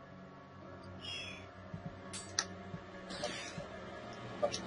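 Short electronic blips sound as menu items are picked.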